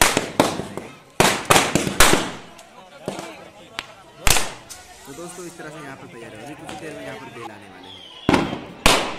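Firecrackers burst with loud sharp bangs outdoors.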